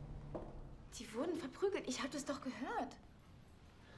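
A woman speaks.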